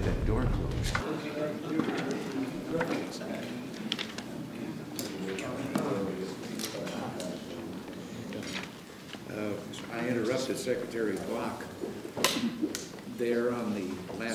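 An elderly man talks with animation nearby.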